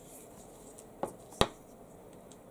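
A small object is set down on a hard desk with a light click.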